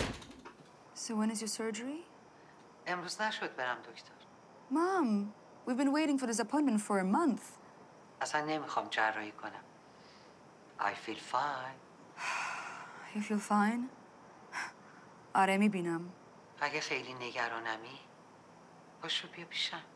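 An older woman speaks emotionally through a phone video call.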